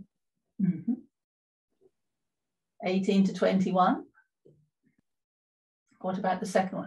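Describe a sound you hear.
An elderly woman speaks calmly through an online call, in short phrases with pauses.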